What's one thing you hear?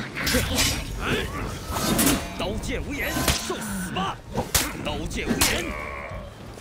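Swords clash and clang in a fierce fight.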